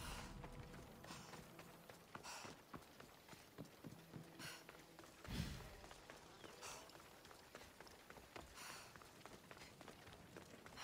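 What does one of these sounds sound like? Footsteps patter quickly on stone as a man runs.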